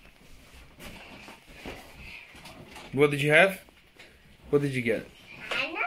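Children's feet thump on a leather sofa.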